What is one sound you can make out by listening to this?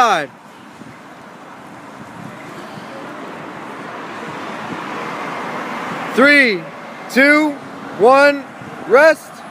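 Traffic hums on a nearby street.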